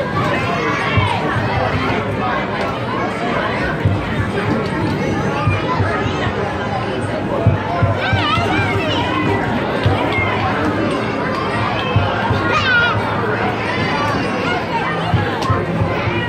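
A basketball thuds against a backboard and rim.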